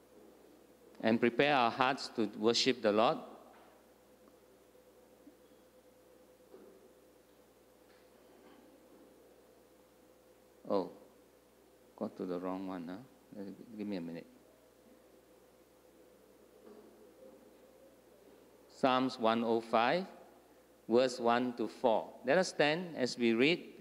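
A man speaks calmly into a microphone, heard over a loudspeaker in an echoing hall.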